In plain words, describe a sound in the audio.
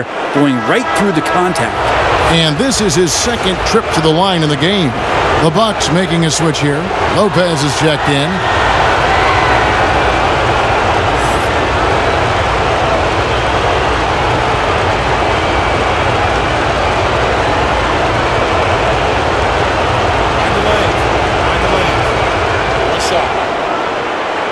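A large crowd murmurs and cheers steadily in an echoing arena.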